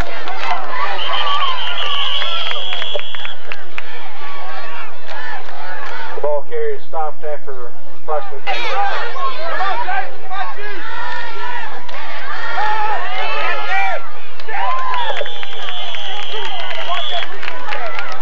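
A referee's whistle blows with long, steady blasts.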